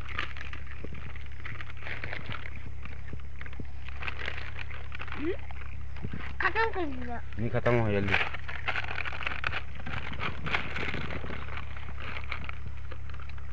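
Snack packets crinkle and rustle.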